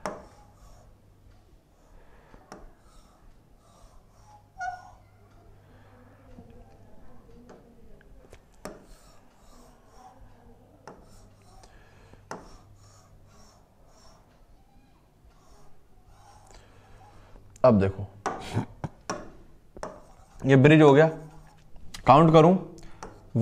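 A marker taps and squeaks on a board.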